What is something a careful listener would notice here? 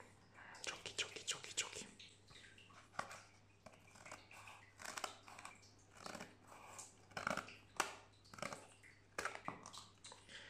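A foil wrapper crinkles as it is handled.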